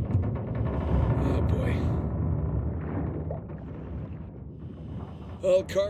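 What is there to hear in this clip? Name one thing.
Air bubbles gurgle and rumble underwater.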